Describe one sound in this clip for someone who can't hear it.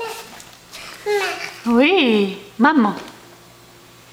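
A baby squeals and babbles loudly nearby.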